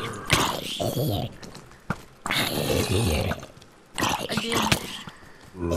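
Zombies groan in low, rasping voices.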